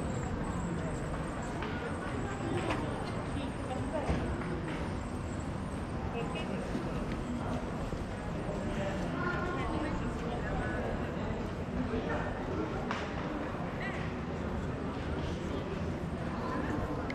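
Footsteps tap on stone paving close by.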